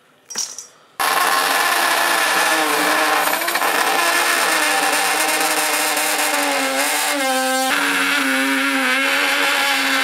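A small rotary tool whines steadily at high speed, its pitch wavering as it grinds.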